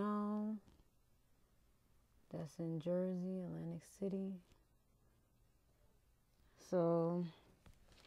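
A woman speaks calmly and close by, in short phrases.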